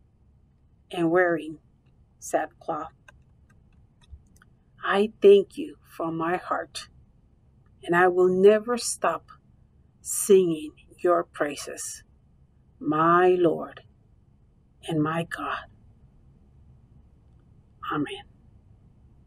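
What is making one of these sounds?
A middle-aged woman speaks calmly into a microphone, close up, with pauses.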